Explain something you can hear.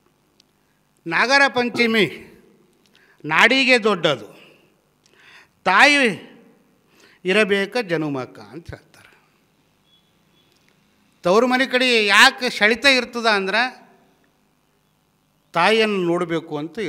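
A middle-aged man speaks through a microphone and loudspeakers in measured bursts with pauses.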